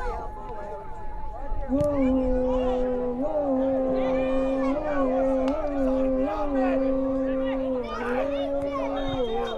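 A small crowd of spectators calls out and cheers.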